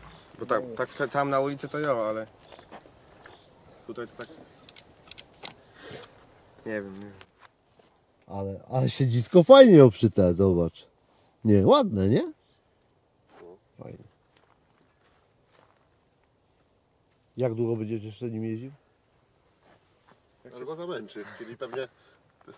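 A man speaks calmly close by, in short bursts.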